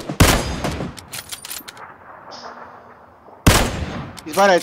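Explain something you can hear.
A rifle fires two loud shots that echo across open country.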